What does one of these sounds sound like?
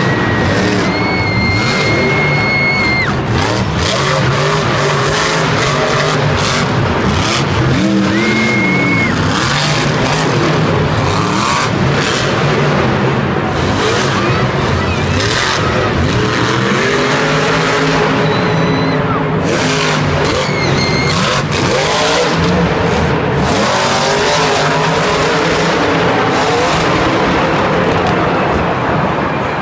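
Monster truck engines roar and rev loudly in a large echoing arena.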